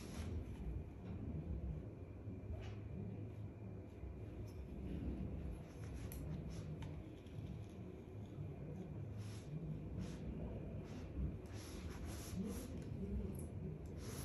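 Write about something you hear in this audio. A flat iron slides softly down hair.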